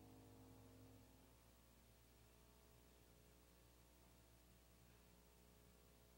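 A grand piano plays softly in a large echoing hall.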